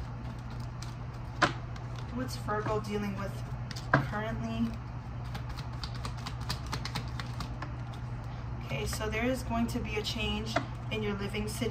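Cards are shuffled and tapped by hand.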